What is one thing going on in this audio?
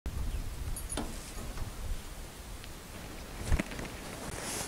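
A wheelbarrow wheel rolls over dirt ground.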